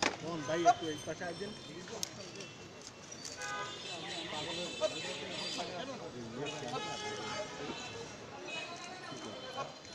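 A crowd of men talks and murmurs nearby outdoors.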